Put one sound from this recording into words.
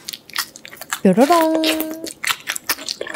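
A young woman hums with pleasure close to a microphone.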